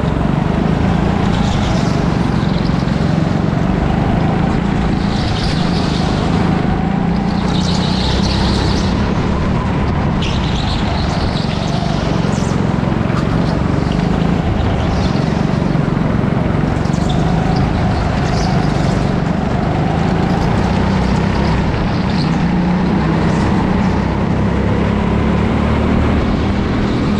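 Other go-kart engines buzz nearby in a large echoing hall.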